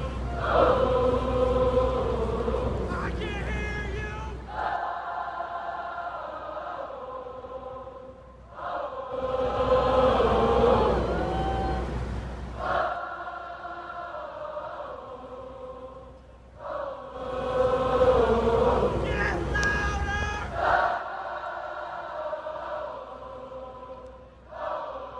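A large crowd sings slowly together outdoors.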